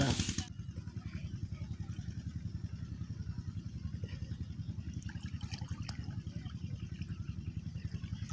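Water trickles and splashes from a jug into a shallow channel.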